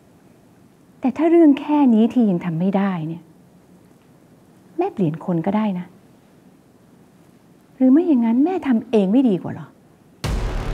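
A woman speaks close by in an earnest, emotional voice.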